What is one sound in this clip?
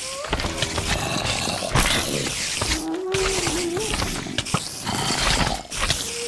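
A game zombie groans.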